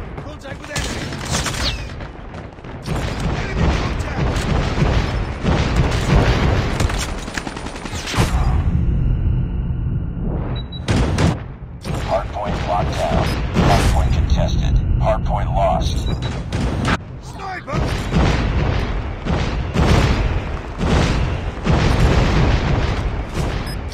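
Sniper rifle shots crack loudly.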